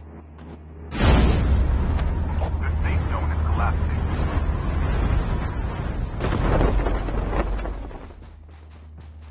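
Wind rushes loudly past a gliding figure.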